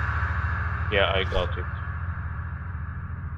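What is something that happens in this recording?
A phone chimes with an incoming message.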